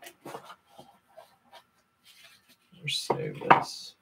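Plastic card sleeves rustle and click as hands handle them.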